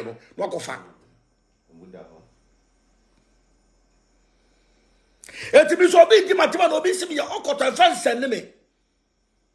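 A man speaks emphatically close to a phone microphone.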